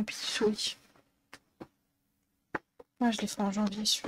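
Paper rustles as a sheet is moved.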